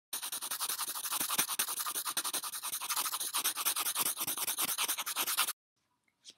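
A pen scratches quickly and steadily across paper.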